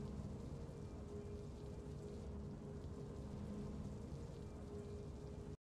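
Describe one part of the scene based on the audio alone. Triumphant game music plays with a sustained, steady chord.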